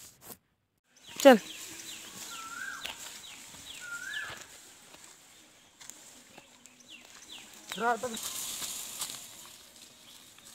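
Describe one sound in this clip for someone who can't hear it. Leafy branches rustle and scrape as a bundle of brush is carried.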